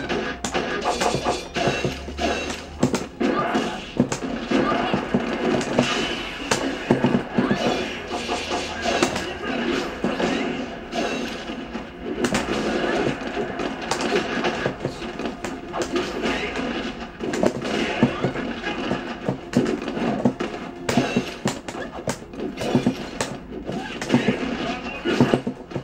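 Game characters shout and grunt through a television speaker.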